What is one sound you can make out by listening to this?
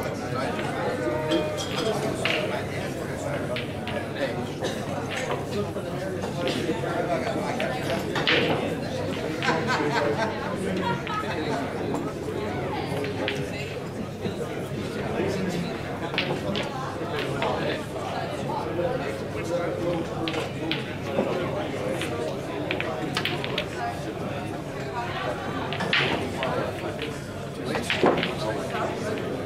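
Pool balls clack together in a busy hall.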